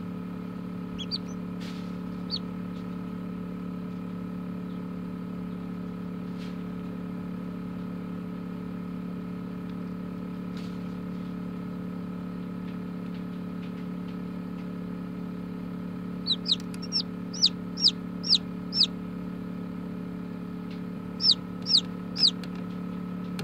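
A hatching chick peeps shrilly from inside its egg, in short bursts.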